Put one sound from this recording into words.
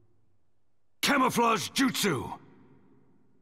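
A man speaks a short phrase loudly, with force, close up.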